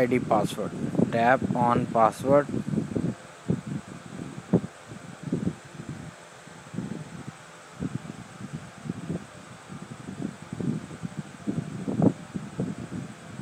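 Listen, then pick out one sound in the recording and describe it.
Taps on a phone's touch keyboard click lightly and quickly.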